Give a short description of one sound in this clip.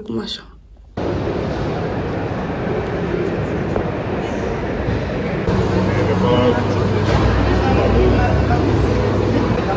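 Distant crowd murmur echoes through a large hall.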